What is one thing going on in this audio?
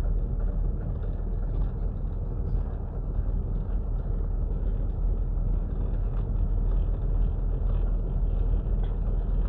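A car drives slowly along a concrete street, heard from inside with a low rumble.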